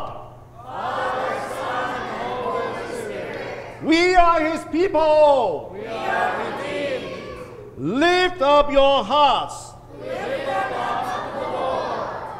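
A man speaks calmly through a microphone in a reverberant hall.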